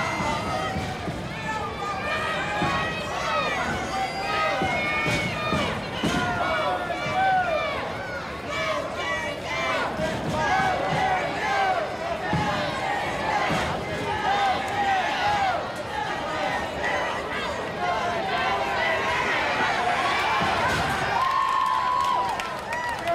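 A large crowd shouts and cheers loudly outdoors.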